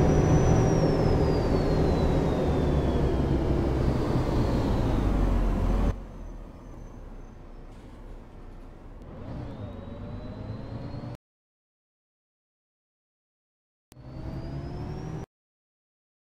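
A bus engine rumbles loudly, its pitch slowly falling, then drops to a quieter hum that rises again.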